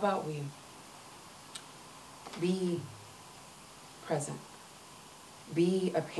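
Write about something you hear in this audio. A young woman reads aloud slowly into a microphone, with long pauses between phrases.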